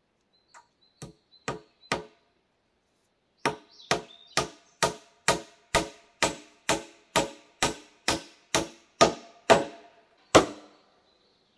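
Wooden blows knock sharply and rhythmically on a post.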